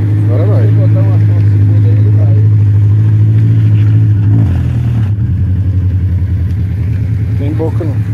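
Tyres squelch and spin in thick mud.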